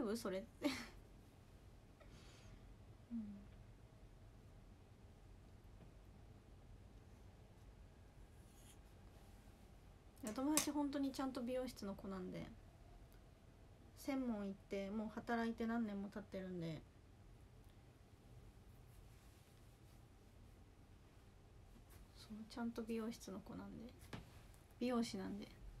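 A young woman speaks softly and calmly, close by.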